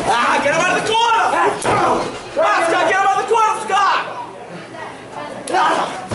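A wrestler's hand slaps loudly against another's chest.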